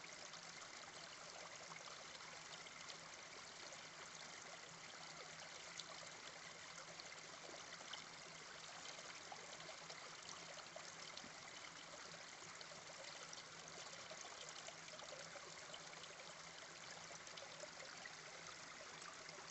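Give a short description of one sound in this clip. A small stream trickles and babbles steadily over rocks close by.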